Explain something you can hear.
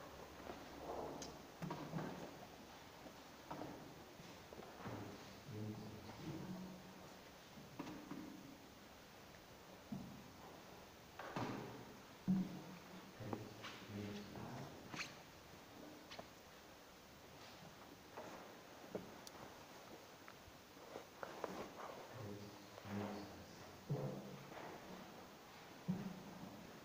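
A man's voice speaks in a slow, chanting way, echoing in a large hall.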